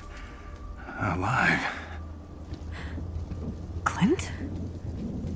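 A young woman speaks softly with surprise.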